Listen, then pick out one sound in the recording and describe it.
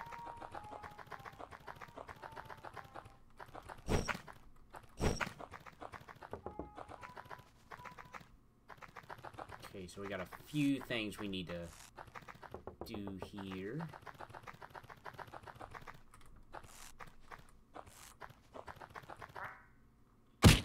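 Quick light footsteps patter steadily.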